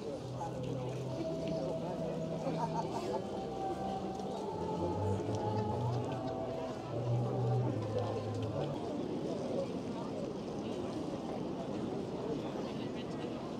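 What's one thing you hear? A large outdoor crowd murmurs and chatters steadily.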